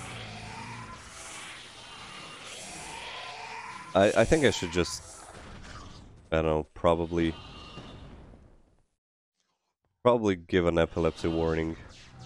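Fireballs whoosh and burst in loud bursts.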